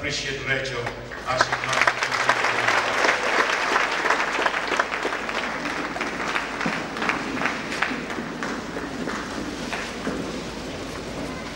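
A crowd claps, cheers and shouts.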